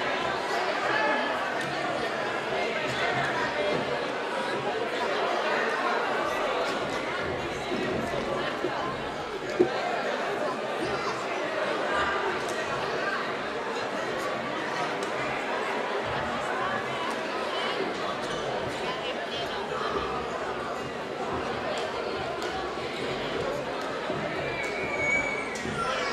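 A crowd of spectators chatters steadily in a large echoing gym.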